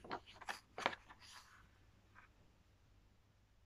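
A book closes with a soft thump.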